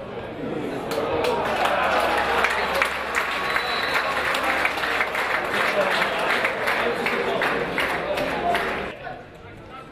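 Players shout and cheer outdoors.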